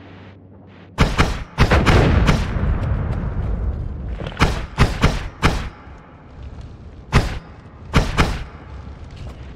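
Small explosions boom and crackle in bursts.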